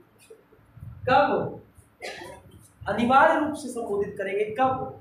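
A man speaks loudly and clearly to a room.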